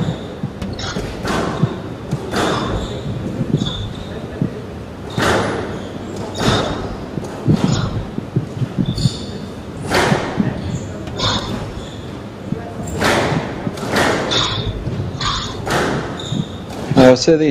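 Squash rackets strike a squash ball, which smacks off the court walls in an echoing glass court.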